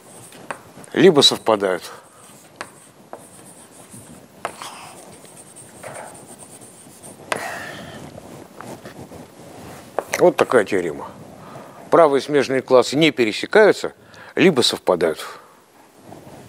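An elderly man lectures in a calm, raised voice.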